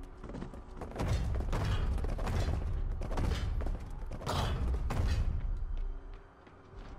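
Heavy metal footsteps stomp and thud close by.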